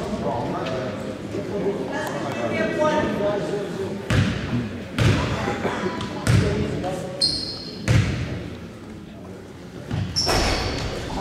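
Spectators chatter in a large echoing gym.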